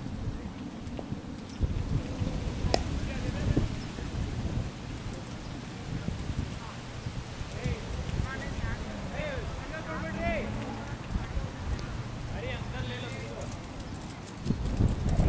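Wind rumbles across an open field.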